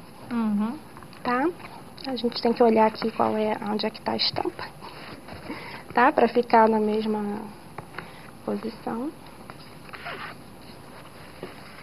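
Paper rustles as it is handled and folded.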